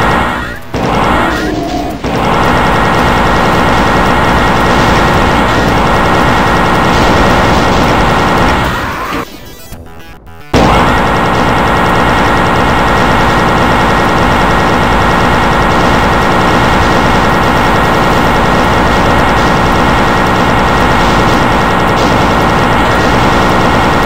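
A plasma gun fires rapid crackling bursts.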